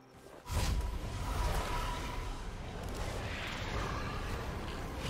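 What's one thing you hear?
Fantasy battle sound effects clash and whoosh.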